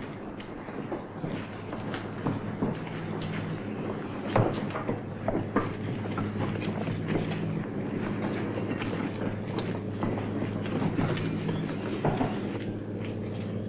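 Footsteps crunch over loose rubble.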